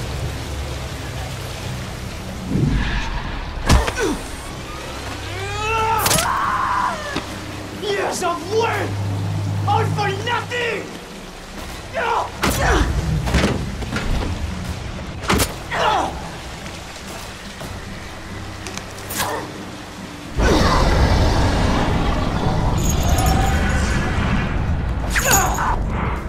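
Blows and thuds of a scuffle sound sharply.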